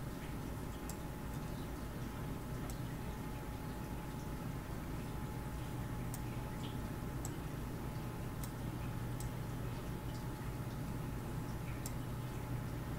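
Short electronic clicks and chimes sound as letters are picked in a game.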